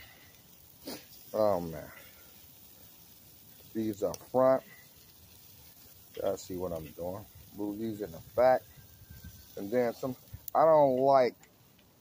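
Metal tongs clink against a grill.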